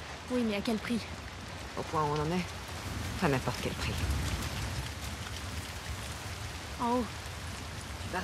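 Footsteps crunch on a leafy forest floor.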